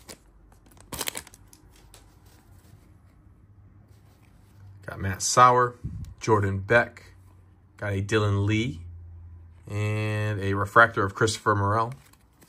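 Trading cards slide and click against each other.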